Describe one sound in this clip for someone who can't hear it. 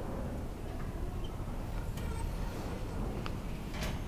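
Elevator doors slide open with a low rumble.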